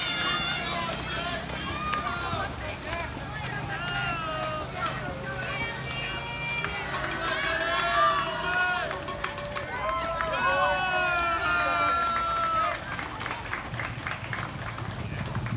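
A crowd of children and adults cheers and shouts loudly outdoors.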